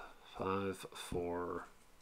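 A playing card slides softly across a table.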